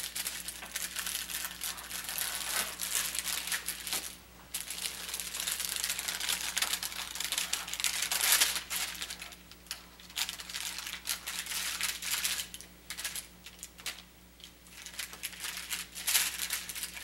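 Paper packaging crinkles and rustles close by.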